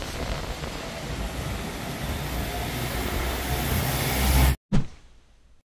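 A car drives slowly along a wet road.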